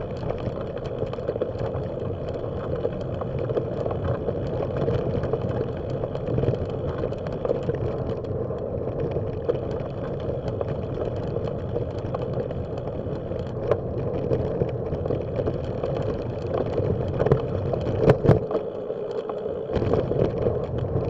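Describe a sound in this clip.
Wind rumbles and buffets against the microphone outdoors.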